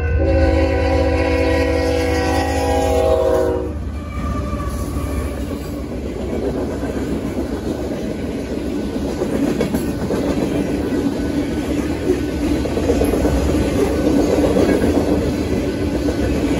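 A crossing bell rings steadily.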